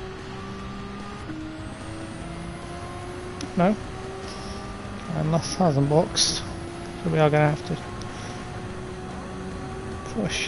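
A racing car engine drones steadily, rising slowly in pitch between gear changes.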